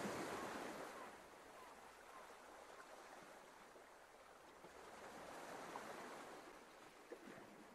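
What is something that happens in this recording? Gentle waves wash onto a pebble shore.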